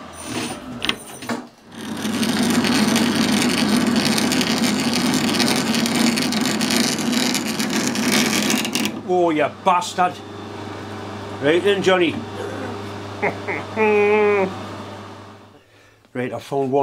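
A lathe motor hums steadily, then winds down.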